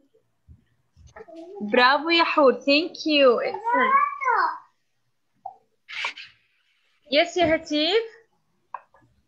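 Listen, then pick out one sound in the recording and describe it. A young girl talks animatedly through an online call.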